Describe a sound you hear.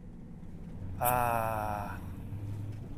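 A man lets out a long, drawn-out groan.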